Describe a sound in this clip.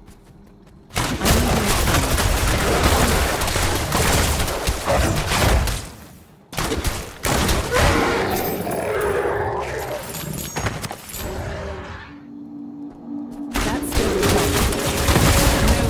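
Spells crackle and blast as a warrior fights monsters.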